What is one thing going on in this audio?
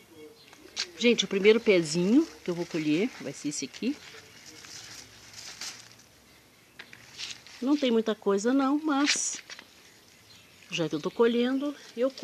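Leaves rustle close by.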